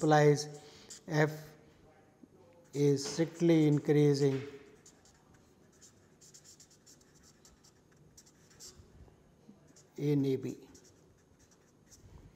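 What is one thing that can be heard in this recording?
A felt-tip marker scratches and squeaks across paper.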